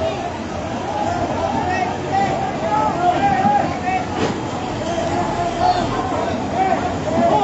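A crowd of men and women shouts and calls out in alarm.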